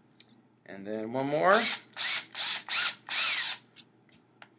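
A power drill whirs and spins up.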